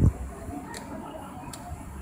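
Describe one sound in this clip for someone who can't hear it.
A finger presses a button with a soft click.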